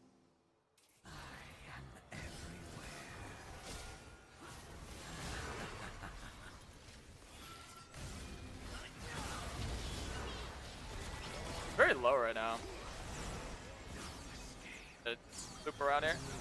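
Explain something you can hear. Game battle effects whoosh, zap and crackle.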